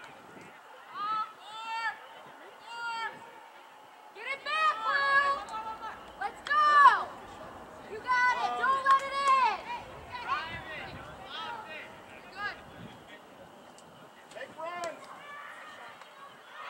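Young women shout and call out across an open field outdoors.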